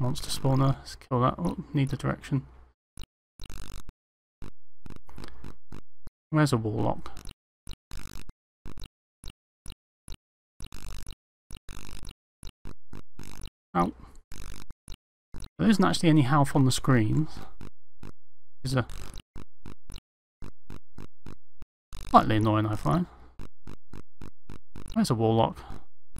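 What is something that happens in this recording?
Retro computer game sound effects click and beep in quick bursts.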